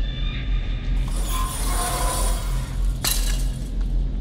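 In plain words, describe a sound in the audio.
A wire fence rattles and tears loudly.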